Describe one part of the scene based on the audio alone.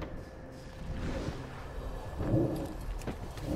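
A large creature's wings flap overhead.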